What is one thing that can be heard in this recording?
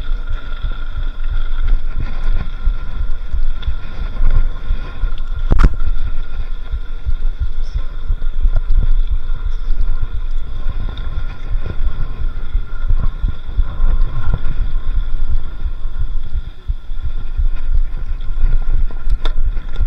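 Wind buffets a microphone outdoors with a low rumble.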